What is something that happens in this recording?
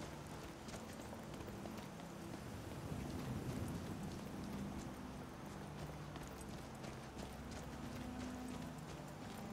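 Footsteps crunch on gravel and grass at a steady walking pace.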